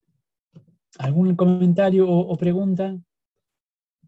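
A man speaks briefly and calmly, close to a microphone.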